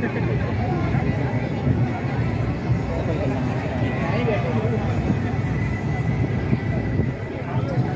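Two men talk with each other close by.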